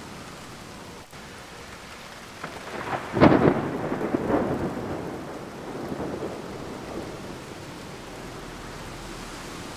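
Rain patters steadily against a window.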